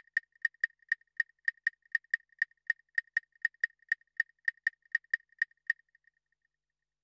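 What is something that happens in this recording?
An electronic instrument plays a high beeping note in a quick, steady rhythm, then stops.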